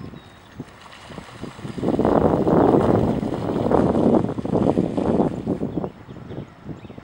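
Ducks splash and flap their wings in the water.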